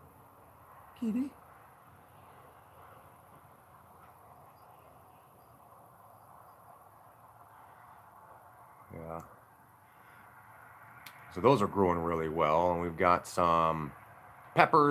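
A man speaks close up, calmly and with pauses.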